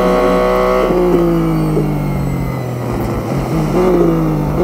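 A race car engine slows down as the car brakes into a corner.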